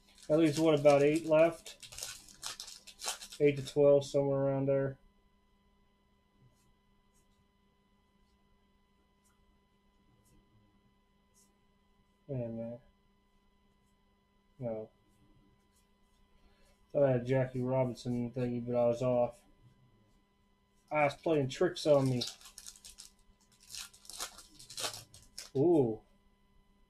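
A foil wrapper crinkles and tears as a pack is ripped open.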